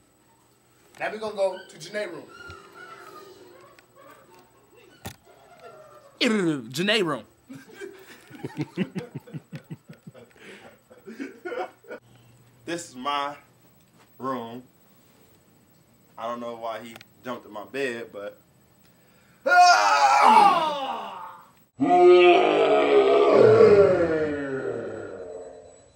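A young man talks and shouts with animation close by.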